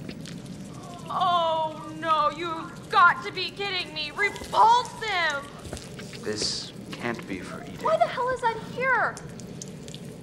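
A young woman speaks with disgust, close by.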